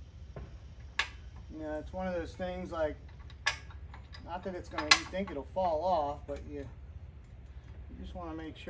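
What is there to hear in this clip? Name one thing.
A metal shackle clinks as a hand turns it on a hitch.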